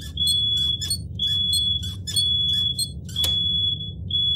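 A lock dial clicks rapidly as it turns.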